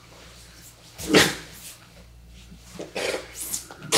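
Bodies shift and thump on a padded mat.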